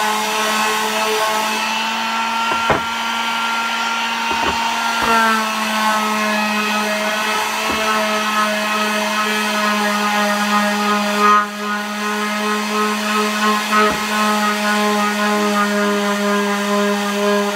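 An electric sander hums and buzzes steadily against wood.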